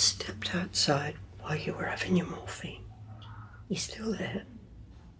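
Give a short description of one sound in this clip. A middle-aged woman speaks gently, close by.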